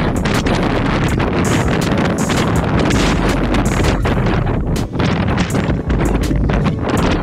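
Strong wind blows and buffets loudly outdoors.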